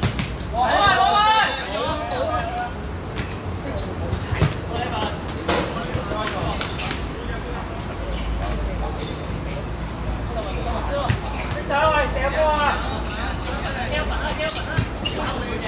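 Sneakers squeak and patter on a hard court.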